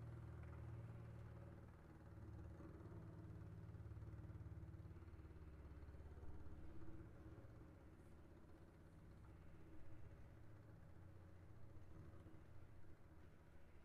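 A double bass plays low, bowed notes.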